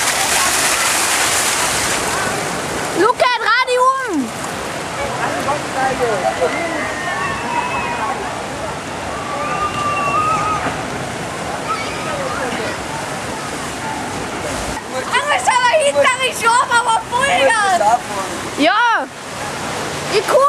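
Water rushes and splashes steadily outdoors.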